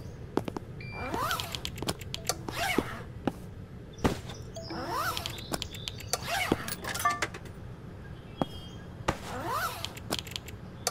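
A short rising whoosh sounds as a game menu opens.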